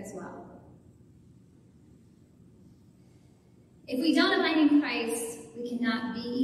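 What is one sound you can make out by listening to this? A young woman speaks calmly into a microphone in an echoing hall.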